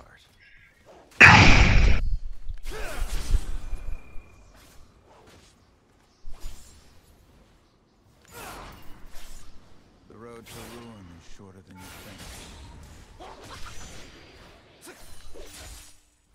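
Magic spell effects whoosh and burst in a fight.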